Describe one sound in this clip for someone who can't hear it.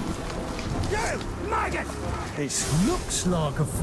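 A gruff male creature voice growls and speaks loudly.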